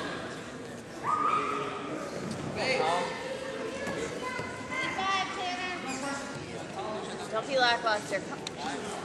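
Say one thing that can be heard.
Several men shout encouragement loudly in an echoing hall.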